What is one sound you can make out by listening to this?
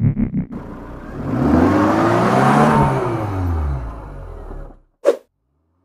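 A car tyre screeches as it spins in a burnout.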